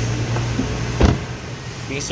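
A car trunk lid slams shut with a single thud.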